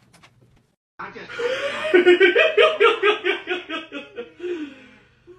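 A cartoon plays loudly from a television.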